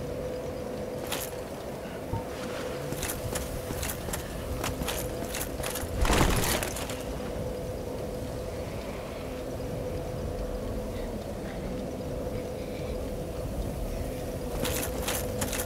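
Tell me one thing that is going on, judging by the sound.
Armored footsteps clink on stone.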